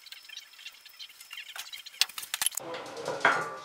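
Metal clicks and rattles as a vice is worked by hand.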